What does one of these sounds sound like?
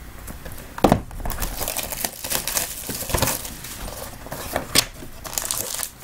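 Plastic wrap crinkles and tears as a box is opened.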